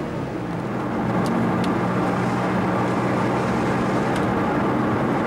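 Rain patters on a car windscreen.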